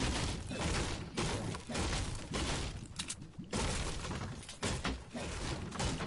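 A pickaxe thuds against wood.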